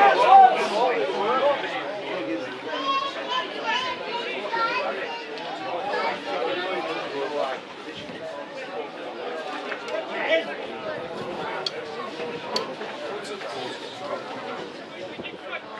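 Players shout and call to each other across an open field.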